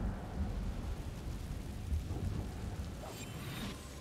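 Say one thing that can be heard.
A low rumble of magic fire roars steadily.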